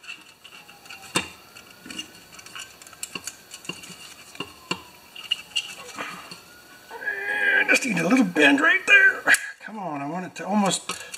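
Plastic parts click and snap as they are fitted together by hand.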